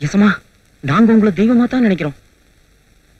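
A man speaks forcefully, close by.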